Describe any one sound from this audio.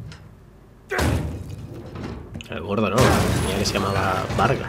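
A heavy iron gate creaks as it is pushed open.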